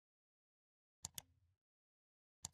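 A mouse button clicks twice.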